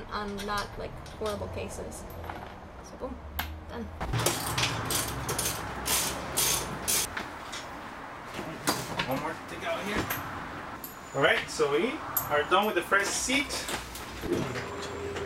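Metal parts click and clatter as hardware is fastened.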